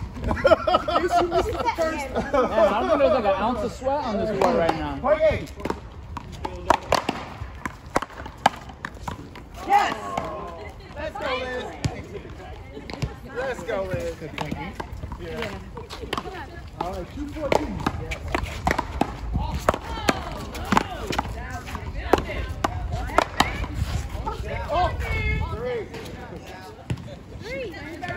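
A ball thuds against a wall.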